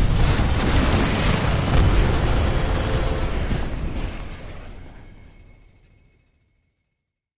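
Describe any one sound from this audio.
Game explosions boom loudly and fade away.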